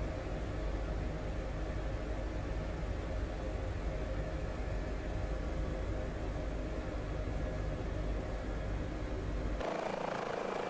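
A helicopter engine drones with a low, muffled rumble heard from inside the cabin.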